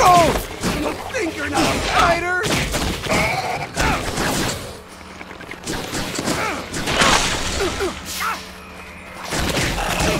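Blows thud in a fight.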